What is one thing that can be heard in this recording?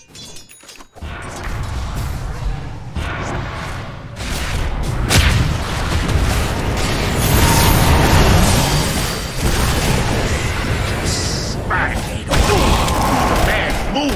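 Game spells blast and crackle in a hectic fight.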